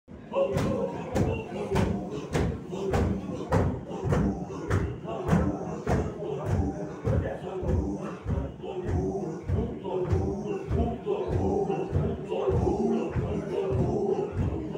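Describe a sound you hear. A group of men chant together loudly in a steady rhythm.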